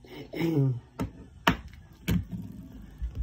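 A hand knocks and bumps against the phone close up.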